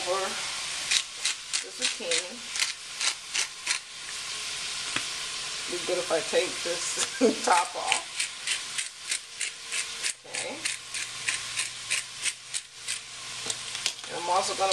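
A seasoning shaker rattles in quick, repeated shakes.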